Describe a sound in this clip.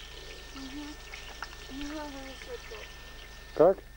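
A young boy speaks softly close by.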